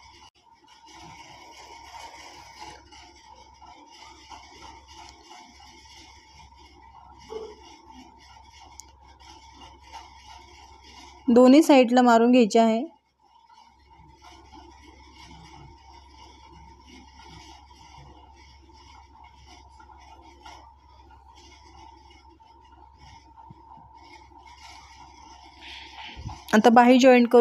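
A sewing machine hums and stitches steadily.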